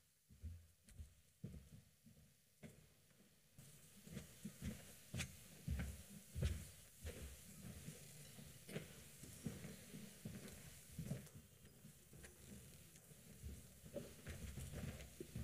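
Footsteps and quiet shuffling sound on a stage as people move about.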